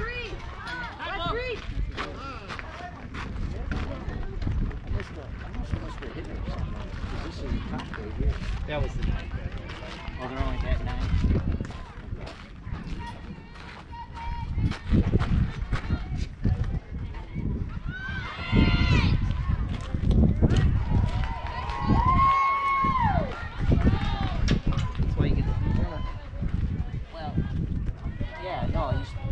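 Players call out and cheer across an open field.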